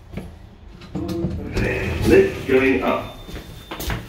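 Lift doors slide open with a rumble.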